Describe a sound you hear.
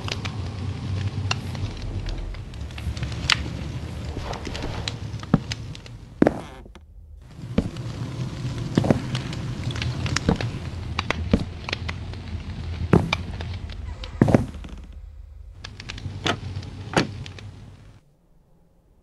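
Wooden blocks knock softly as they are placed one after another.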